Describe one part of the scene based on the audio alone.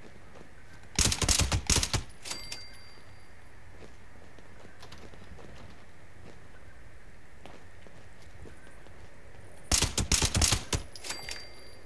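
A rifle fires quick bursts of loud shots that echo briefly.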